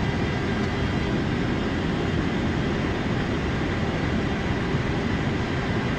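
Jet engines roar steadily as an airliner rolls along a runway.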